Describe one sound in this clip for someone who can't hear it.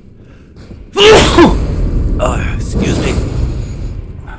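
A heavy weapon strikes with a loud, ringing crash.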